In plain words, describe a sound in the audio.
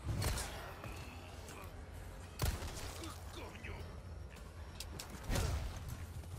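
A gunshot bangs sharply.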